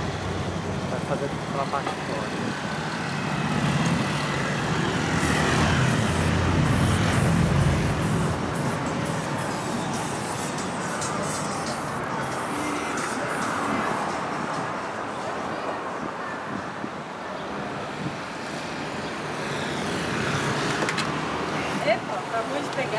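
Traffic passes on a nearby street outdoors.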